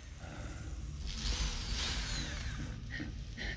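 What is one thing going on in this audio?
A power drill whirs briefly.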